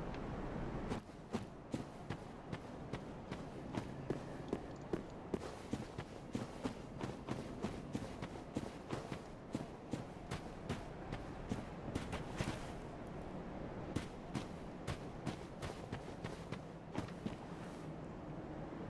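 Armoured footsteps clank steadily on stone and tiles.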